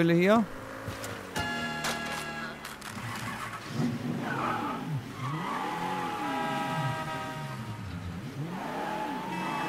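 A car engine starts and revs as the car drives off.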